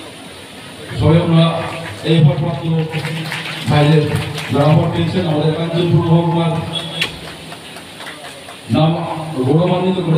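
A man speaks loudly through a loudspeaker, echoing outdoors.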